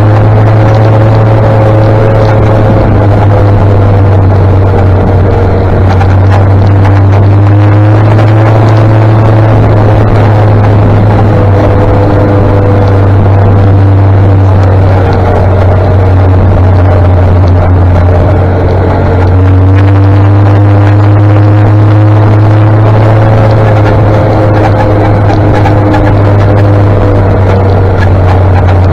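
A motorcycle engine hums steadily up close, its pitch rising and falling slightly.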